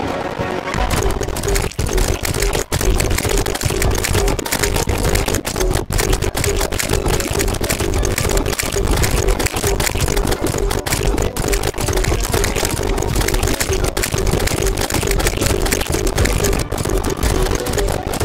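Rapid magic shots crackle and zap again and again.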